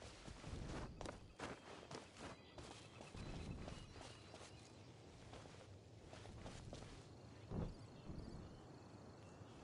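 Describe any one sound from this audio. Light scuffing footsteps scrape against rock.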